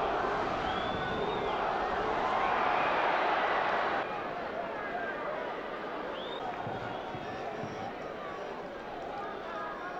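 A large stadium crowd roars and cheers, then quiets down.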